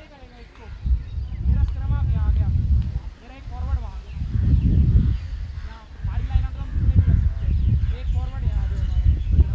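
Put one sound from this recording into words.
Young men talk and call out to each other nearby outdoors.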